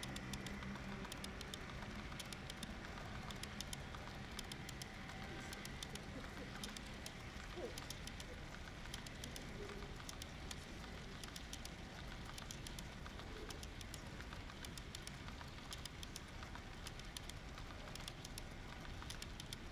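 A model train rumbles steadily along its track, wheels clicking over rail joints.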